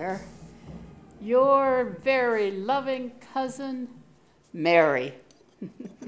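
An elderly woman speaks expressively.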